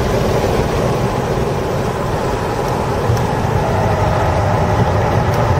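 A car engine roars loudly and revs up as the car speeds around a track.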